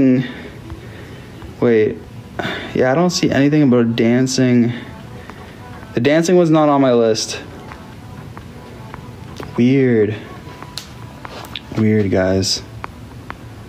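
A young man talks casually and close up, in short bursts with pauses.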